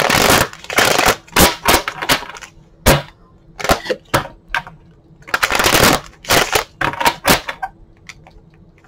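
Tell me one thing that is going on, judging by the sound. A deck of tarot cards is shuffled by hand.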